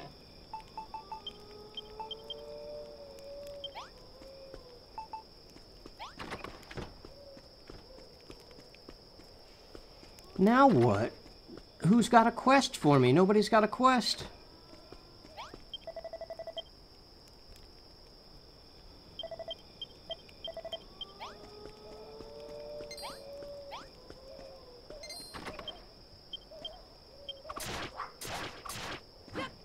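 Soft game music with a gentle melody plays.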